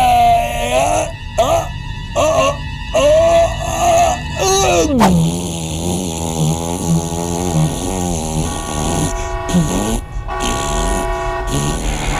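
A man sings loudly and with animation, close by.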